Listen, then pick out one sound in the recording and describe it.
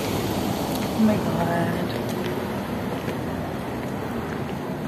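A young woman speaks briefly close by outdoors.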